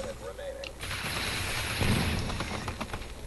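A futuristic energy gun fires with a loud whooshing blast.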